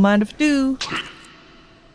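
A young woman speaks into a microphone with animation.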